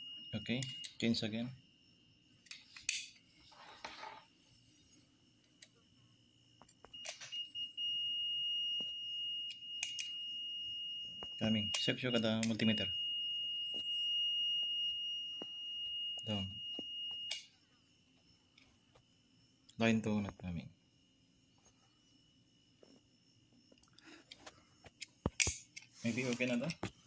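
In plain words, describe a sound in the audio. Metal probe tips click against socket contacts.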